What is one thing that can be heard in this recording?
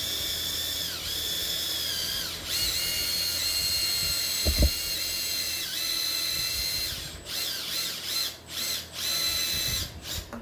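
A cordless drill whines at high speed, slowing and speeding up in bursts.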